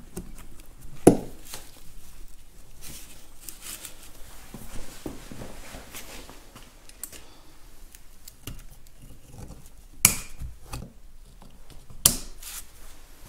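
Metal parts clink and scrape against each other close by.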